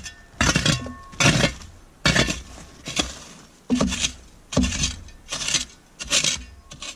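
A shovel scrapes and chops through snow and frozen dirt in repeated strokes.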